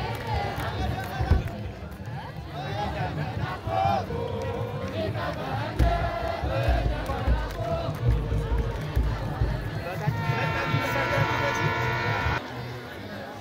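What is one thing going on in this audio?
A group of men chants together outdoors.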